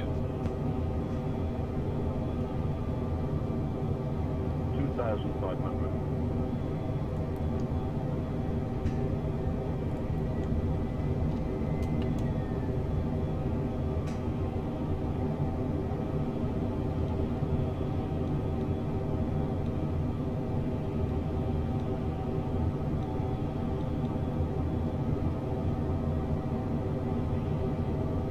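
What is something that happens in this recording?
Jet engines hum steadily in a cockpit.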